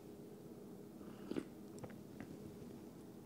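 A young man sips a hot drink with a slurp.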